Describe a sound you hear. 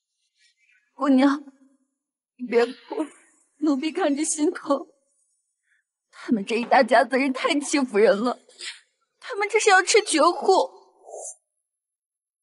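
A young woman speaks in an upset, pleading tone.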